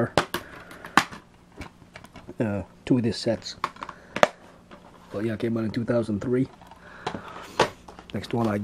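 Plastic disc cases click and clack.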